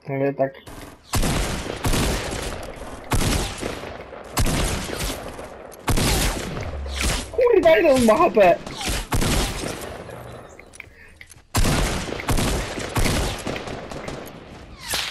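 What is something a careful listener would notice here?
Loud gunshots bang out in quick, echoing bursts.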